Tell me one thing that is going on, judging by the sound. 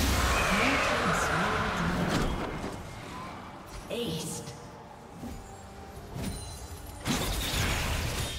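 Game spells whoosh and crackle in a fight.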